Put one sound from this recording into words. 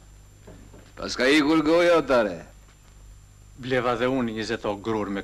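An elderly man speaks slowly, close by.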